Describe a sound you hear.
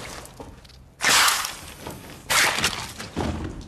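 A gun fires sharply.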